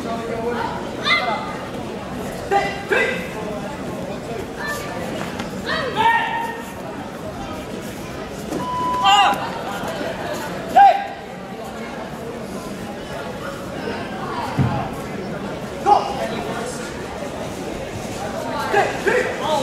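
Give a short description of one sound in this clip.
Young fighters shout sharp cries in a large echoing hall.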